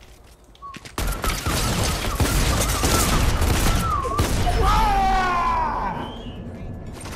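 A young man shouts excitedly into a microphone.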